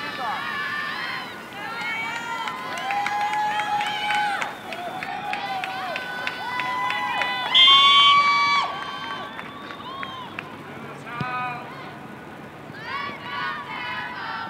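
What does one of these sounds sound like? A crowd of young women and girls shouts and cheers excitedly outdoors.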